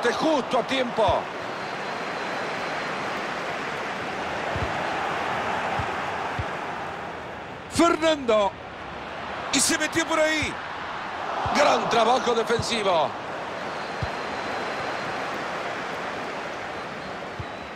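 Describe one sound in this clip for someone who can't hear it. A large crowd murmurs and cheers steadily in a big stadium.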